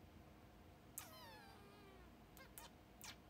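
A young woman makes a short, falling hum close to the microphone.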